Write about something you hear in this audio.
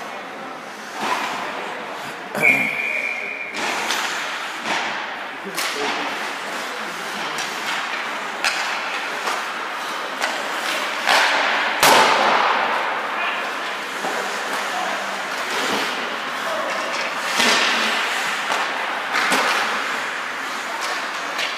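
Hockey sticks and pucks clack and knock against the ice and boards.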